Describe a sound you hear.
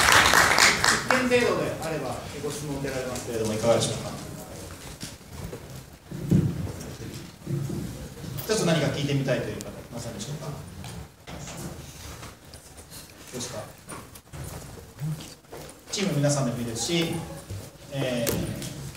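A man speaks with animation into a microphone, heard through loudspeakers in a large room.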